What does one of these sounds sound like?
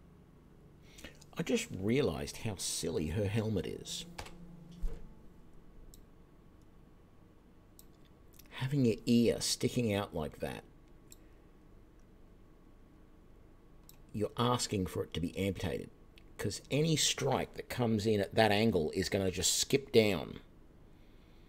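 A middle-aged man talks calmly and close to a microphone, in short bursts with pauses.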